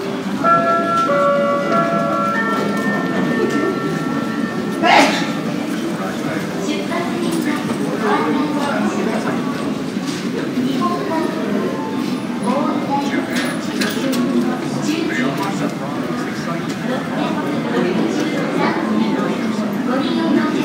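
A crowd of people murmurs in a large echoing hall.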